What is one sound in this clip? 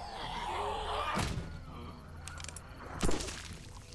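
A car door creaks open.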